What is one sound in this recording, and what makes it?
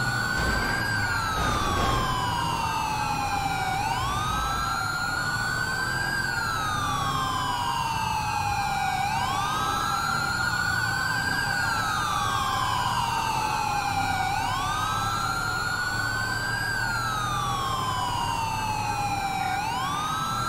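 A car engine hums as the car drives.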